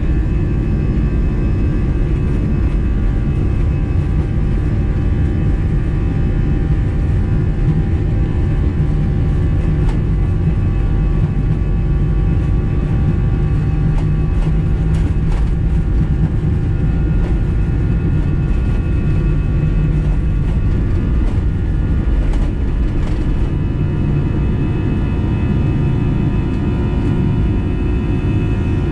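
Jet engines roar loudly and steadily from inside an airliner cabin.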